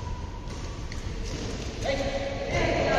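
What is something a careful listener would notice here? Badminton rackets strike a shuttlecock in an echoing hall.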